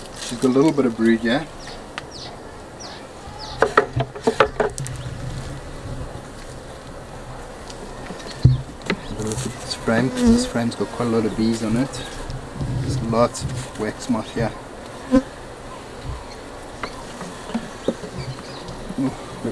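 Wooden hive frames knock and scrape against each other.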